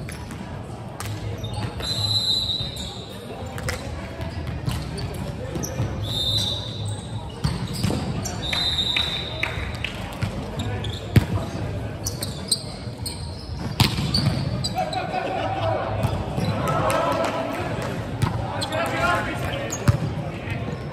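Volleyball players hit the ball with sharp slaps in a large echoing hall.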